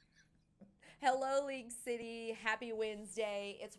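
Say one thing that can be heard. A woman speaks with animation into a microphone, close by.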